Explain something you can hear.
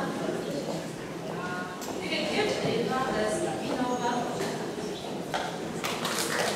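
A woman speaks into a microphone in a large echoing hall.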